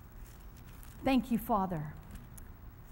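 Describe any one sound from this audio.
A woman reads aloud briefly through a microphone.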